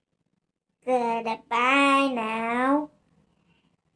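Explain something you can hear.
A young girl sings loudly close by.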